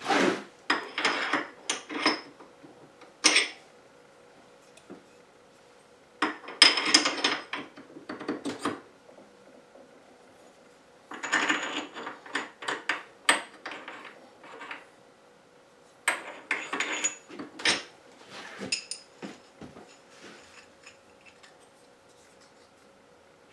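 Small metal parts click and clink together.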